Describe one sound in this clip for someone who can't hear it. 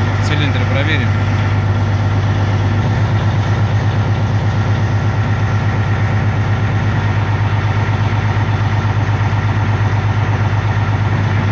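An engine idles with a steady, low, throbbing rumble.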